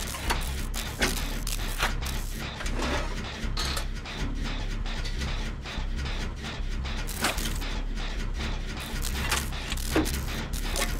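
Metal parts clank and rattle as a machine is repaired.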